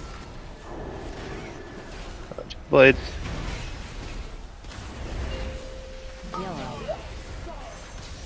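Game spell effects whoosh and chime.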